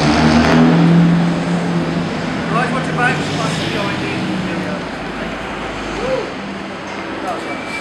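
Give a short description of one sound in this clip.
Traffic hums along a city street.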